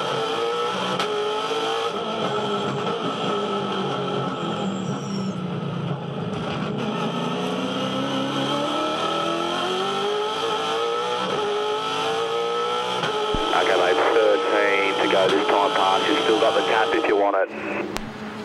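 A racing car engine roars loudly up close, rising and falling in pitch as the car accelerates and shifts gears.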